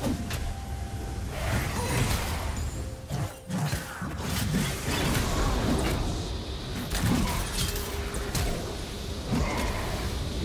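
Spell blasts and sharp hits crackle and thump in a video game battle.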